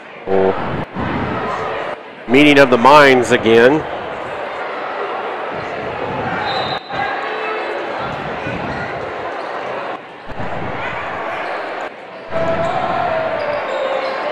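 A crowd of spectators murmurs and chatters in an echoing gym.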